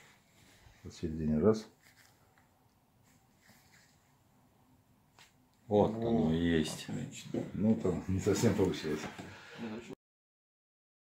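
A middle-aged man speaks close by in a calm, firm voice.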